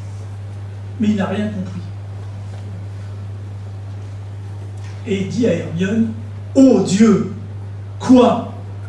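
An elderly man reads out through a microphone and loudspeakers, with pauses.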